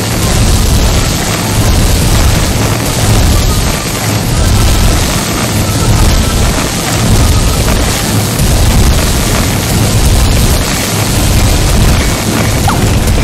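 Electric zaps crackle and buzz rapidly and without pause.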